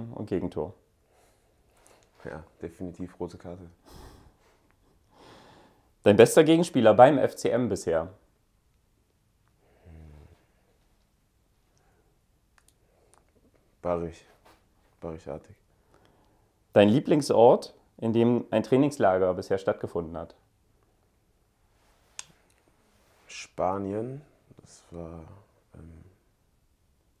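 A young man speaks calmly and close up, pausing between phrases.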